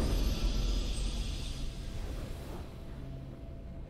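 A triumphant game fanfare swells and then fades away.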